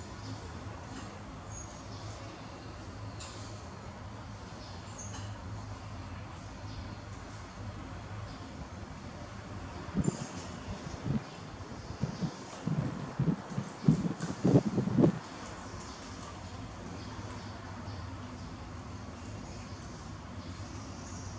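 A small monkey sucks noisily at a bottle.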